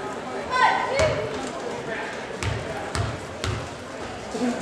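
A basketball bounces on a wooden floor a few times.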